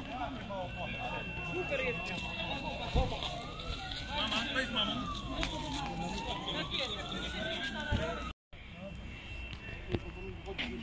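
Men and women talk quietly nearby, outdoors.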